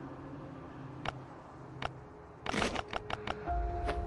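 Soft clicks tap as menu buttons are pressed.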